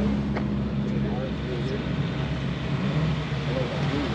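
Another car engine drones as it approaches from a distance.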